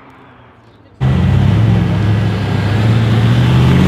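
An estate car's engine rumbles at low speed.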